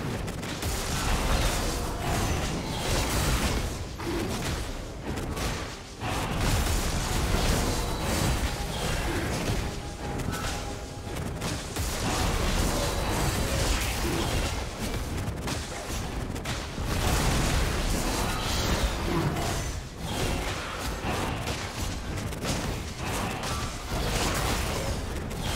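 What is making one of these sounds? Magic spells whoosh and crackle in a fast, busy fight.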